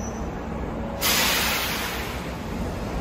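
Air hisses loudly from a train and slowly fades.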